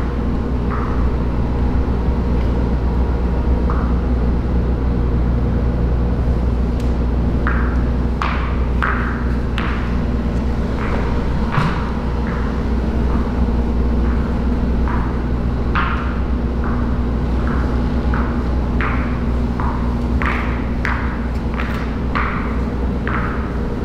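Spiked shoes squelch and tap on a wet floor.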